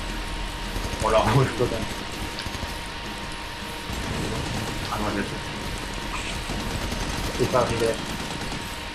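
Gunshots fire in short bursts.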